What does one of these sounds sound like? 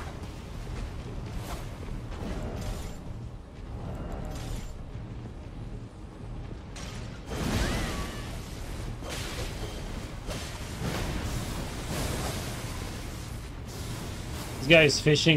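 Blades swing and clash in a fight, with sharp metallic hits.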